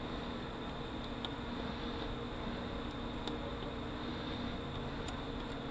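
Small metal parts click and tap as fingers work on a metal housing.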